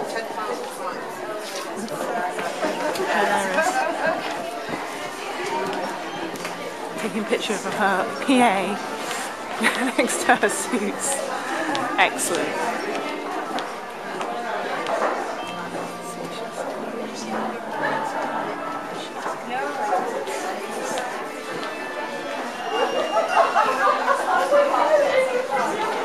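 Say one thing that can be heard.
A crowd of men and women chatter in an echoing hall.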